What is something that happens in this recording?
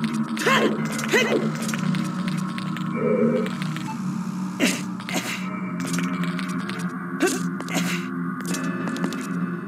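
Footsteps patter quickly on ice.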